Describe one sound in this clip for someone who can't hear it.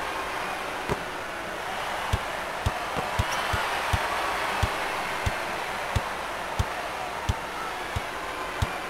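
A crowd roars steadily.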